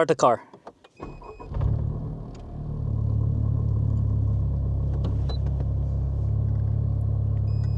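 A car engine starts and idles with a steady low hum.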